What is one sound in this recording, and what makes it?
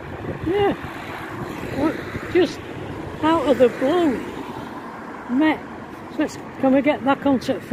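A car drives past on a nearby road.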